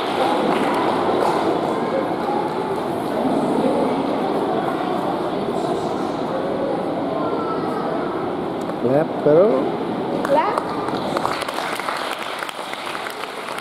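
A woman talks to children.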